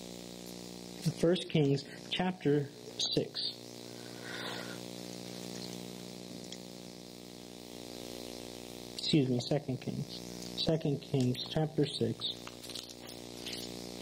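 A man speaks calmly into a microphone, reading out with pauses.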